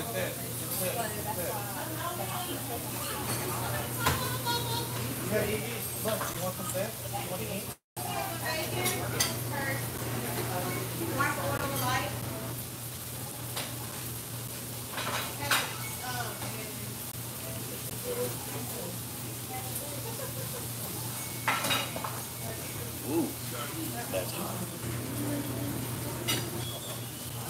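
A man talks calmly and close by.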